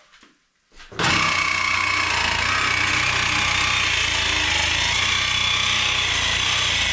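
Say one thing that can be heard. A power drill whirs steadily.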